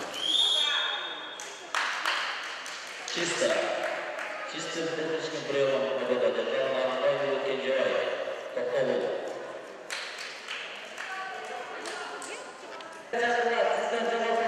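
A crowd of spectators chatters and calls out in an echoing hall.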